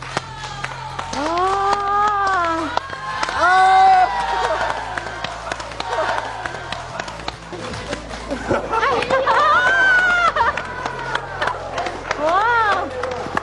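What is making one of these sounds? A woman sobs and wails loudly.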